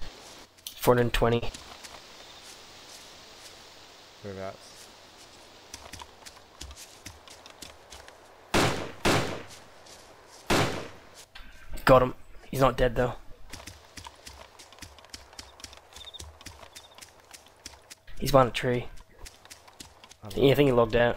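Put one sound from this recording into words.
Footsteps brush through tall grass.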